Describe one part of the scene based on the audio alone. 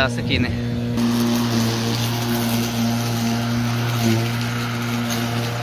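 A lawn mower engine runs with a steady whirring drone.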